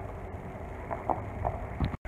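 Hooves thud on dry ground.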